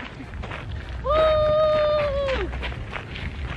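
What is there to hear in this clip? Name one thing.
A young woman close by lets out a long, drawn-out whining hum.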